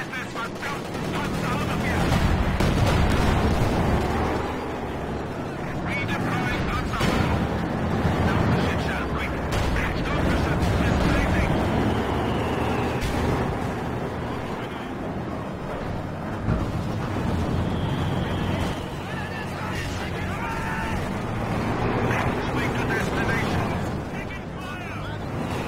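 Explosions boom and crack in bursts.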